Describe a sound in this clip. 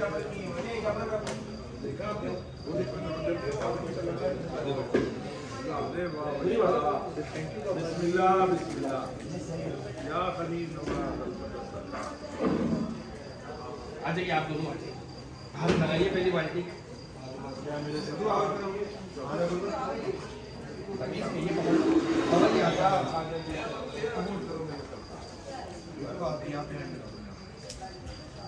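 Several men talk nearby with animation.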